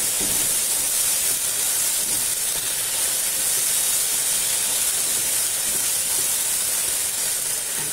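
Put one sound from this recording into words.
A wooden spatula scrapes and stirs in a pan.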